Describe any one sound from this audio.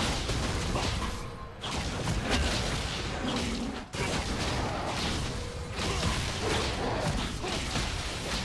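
Game spell effects whoosh and crackle in quick bursts during a fight.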